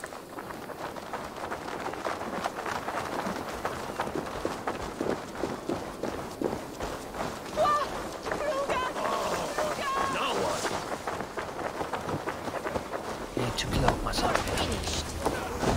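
Footsteps crunch on a dirt path and through grass.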